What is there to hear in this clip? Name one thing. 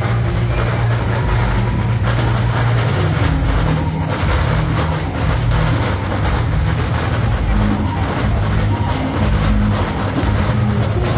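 A large crowd murmurs and chatters loudly outdoors.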